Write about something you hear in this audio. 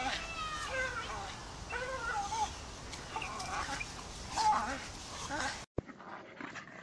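A dog growls as it swings from a rope.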